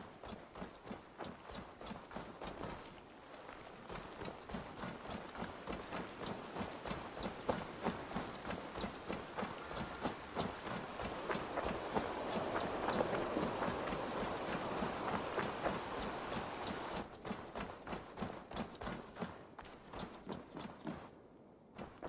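Footsteps thud quickly on a dirt path.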